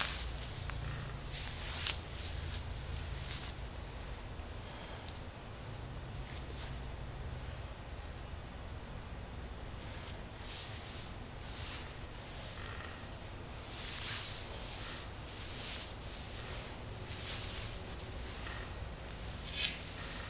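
Hands rub and press against fabric with a soft rustle.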